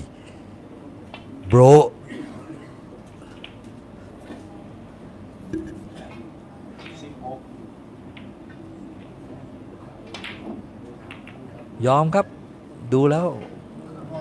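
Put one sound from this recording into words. Snooker balls click sharply against each other.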